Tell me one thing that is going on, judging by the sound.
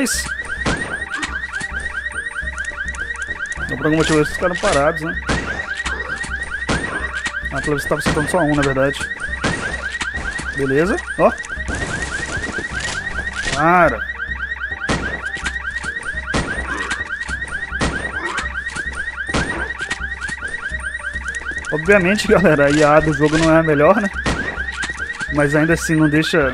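A shotgun fires in loud single blasts.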